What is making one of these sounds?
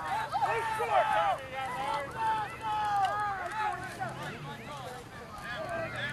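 Young men call out to one another across an open field.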